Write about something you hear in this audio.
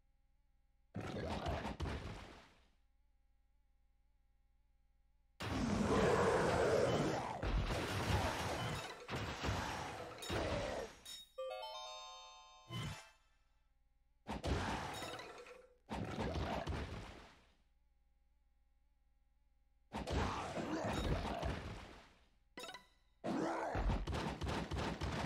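Video game combat sounds crash and clash in loud bursts.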